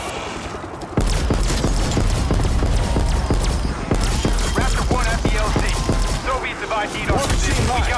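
A ray gun fires rapid bursts of shots.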